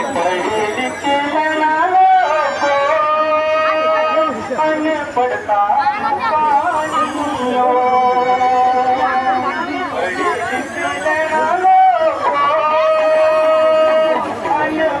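A band plays a tune through a loudspeaker.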